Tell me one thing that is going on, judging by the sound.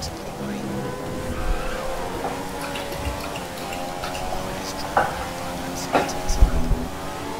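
Racing car engines whine at high revs and shift gears.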